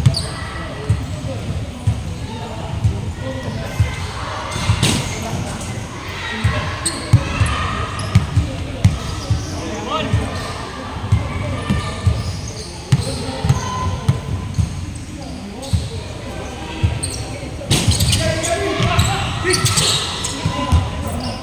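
Basketballs bounce on a hard floor in a large echoing hall.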